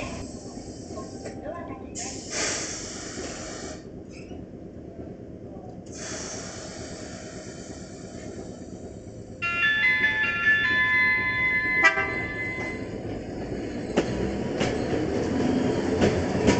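A tram rolls slowly into a stop, its wheels rumbling on the rails.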